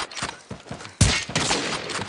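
A rifle fires a sharp, loud shot.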